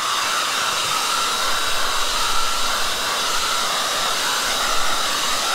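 A hair dryer blows with a steady whirring hiss close by.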